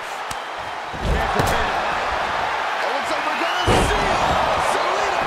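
Bodies slam heavily onto a wrestling mat with deep thuds.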